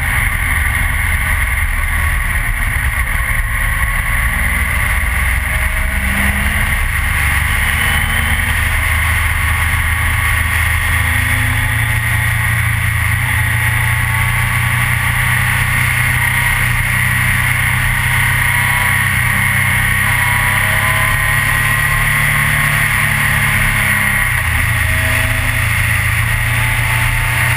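Wind roars loudly past the rider's helmet.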